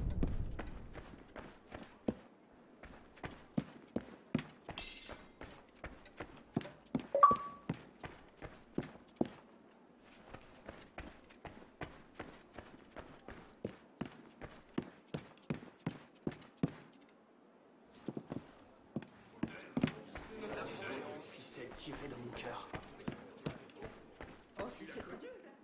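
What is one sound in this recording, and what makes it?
Quick footsteps run across a wooden floor.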